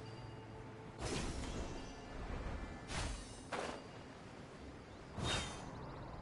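Sharp magical strikes crackle and boom.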